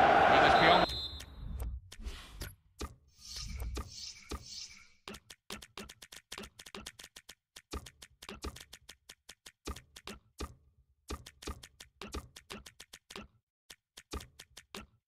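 Short menu clicks tick quickly one after another.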